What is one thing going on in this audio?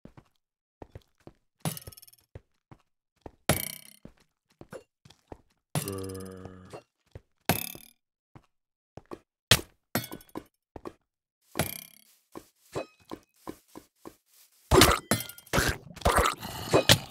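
Footsteps crunch steadily over stone.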